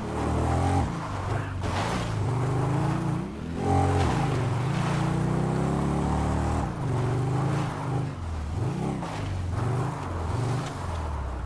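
A dirt bike engine revs and drones steadily, rising and falling in pitch.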